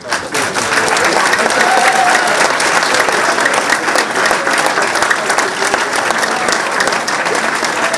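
An audience claps and applauds in a room.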